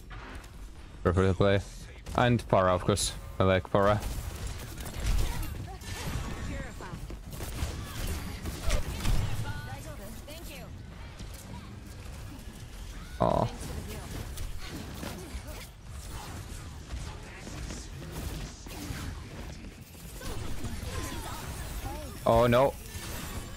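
Game sound effects whoosh and clang.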